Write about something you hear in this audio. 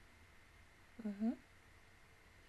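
A young woman makes a brief hum close to a microphone.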